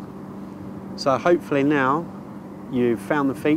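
A young man speaks calmly outdoors, close by.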